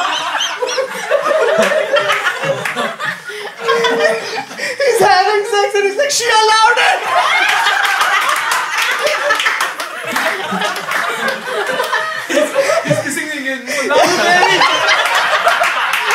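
Several men laugh loudly into microphones.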